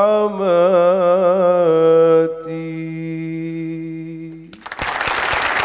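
A man sings a long melodic chant through a microphone in a large hall.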